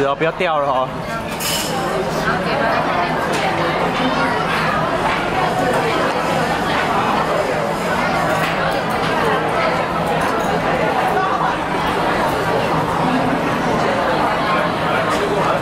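Chopsticks tap lightly against a porcelain spoon and bowl.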